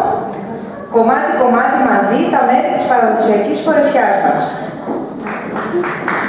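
A young woman speaks clearly into a microphone in a large room.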